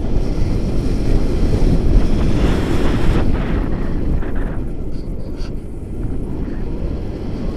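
Wind rushes and buffets loudly against a microphone outdoors.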